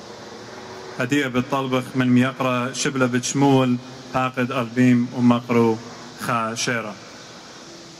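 A young man speaks calmly into a microphone over a loudspeaker outdoors.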